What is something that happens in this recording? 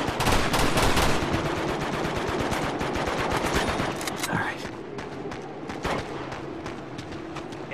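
Footsteps run quickly over snowy ground.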